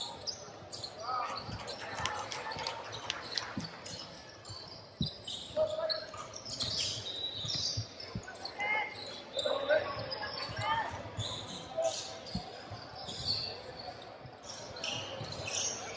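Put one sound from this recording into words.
Young players and spectators call out, echoing in a large hall.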